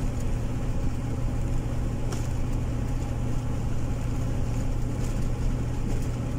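A vehicle engine hums steadily at highway speed.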